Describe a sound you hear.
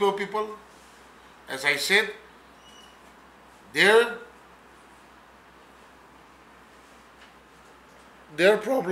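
A middle-aged man speaks firmly into microphones, in short bursts with pauses.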